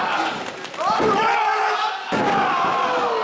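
A wrestler's body slams hard onto the ring mat.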